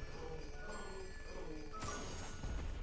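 Video game battle sounds clash and crackle.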